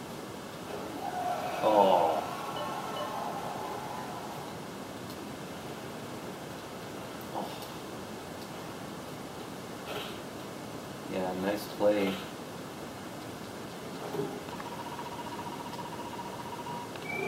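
Sound effects of an ice hockey video game play through a television speaker.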